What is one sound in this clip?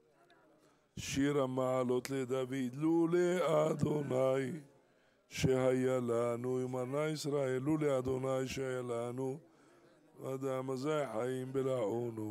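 An elderly man chants loudly and melodically through a microphone.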